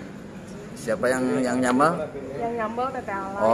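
A young woman talks casually, close by.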